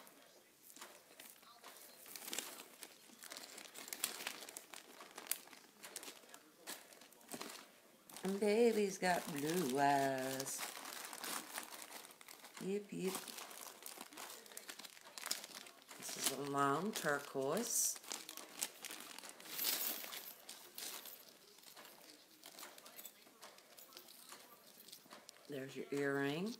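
A metal chain jingles and clinks in a woman's hands.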